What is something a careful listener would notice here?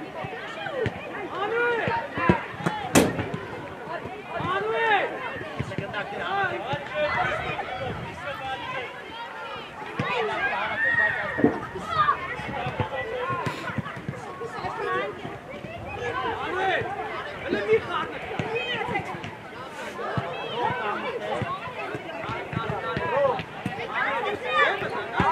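Children shout and call out across an open outdoor pitch.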